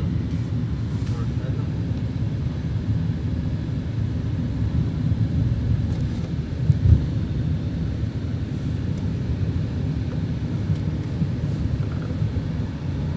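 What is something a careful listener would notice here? A vehicle's engine and tyres rumble steadily on a road.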